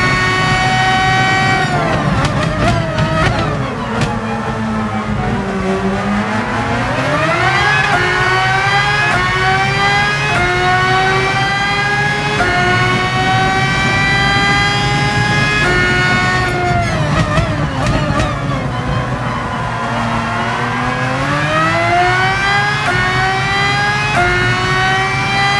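A racing car engine revs high, drops as the car brakes into corners, and climbs again through the gears.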